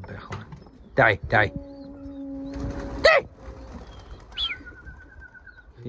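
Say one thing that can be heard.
Pigeons flap their wings loudly as they take off together.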